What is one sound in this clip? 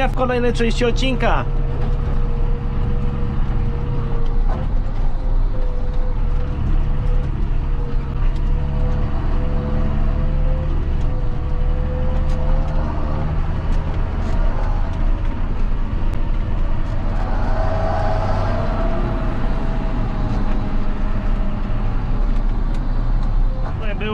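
A tractor engine rumbles steadily, heard from inside the cab.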